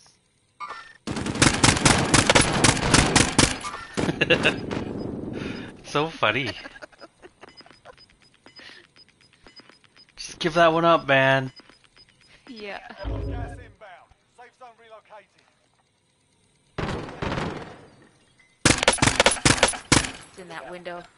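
A rifle fires rapid bursts of shots up close.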